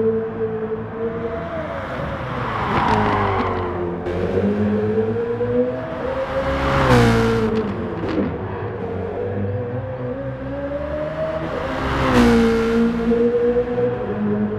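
A racing car engine roars loudly, its pitch rising and falling as it shifts gears.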